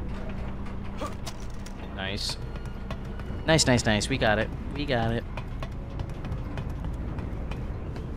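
Footsteps clank on metal ladder rungs.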